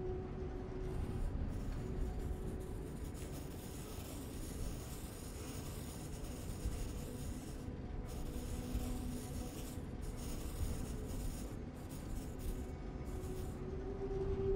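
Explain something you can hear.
A pencil scratches and rubs back and forth on paper.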